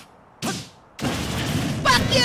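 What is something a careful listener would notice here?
A video game explosion booms.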